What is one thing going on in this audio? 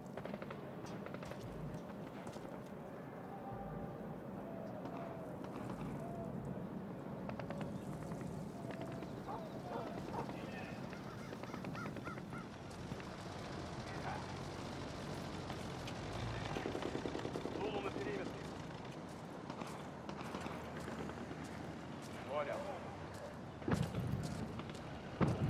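Footsteps crunch steadily on dry dirt.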